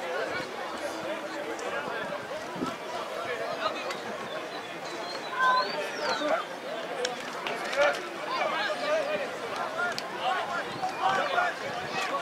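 Young men shout and call out to each other on a sports field.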